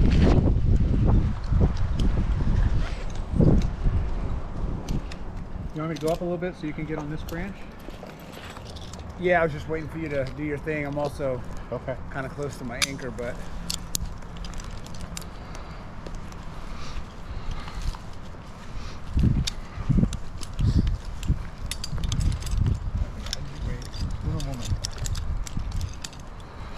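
Climbing gear rustles and clinks close by.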